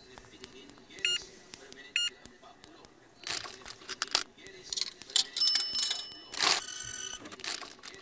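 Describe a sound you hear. A ticket machine beeps as its buttons are pressed.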